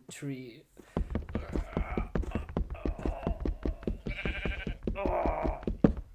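A fist knocks rapidly and repeatedly on a wooden block.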